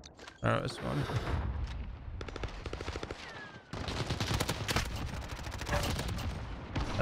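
A young man talks through a microphone.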